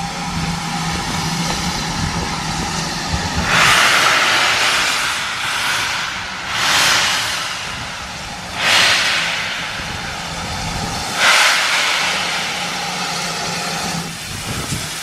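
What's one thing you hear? A steam locomotive's engine hums steadily while idling.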